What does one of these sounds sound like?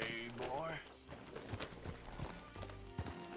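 Horse hooves gallop over the ground.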